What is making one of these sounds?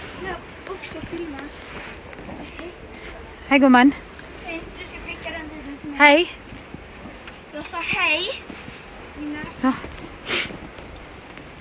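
A young woman speaks and exclaims with animation close by.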